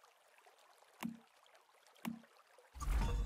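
A game menu clicks twice.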